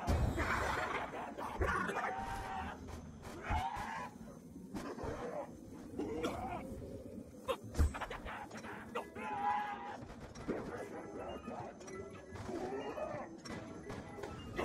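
Zombies growl and moan nearby.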